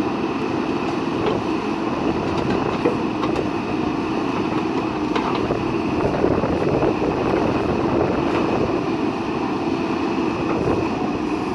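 A digger bucket scrapes and thuds into dirt and stones.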